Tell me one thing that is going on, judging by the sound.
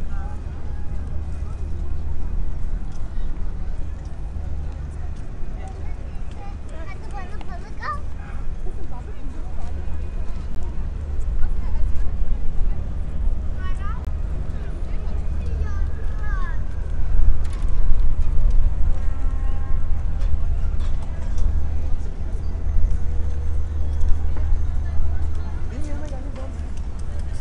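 A crowd of men and women chatters in the distance.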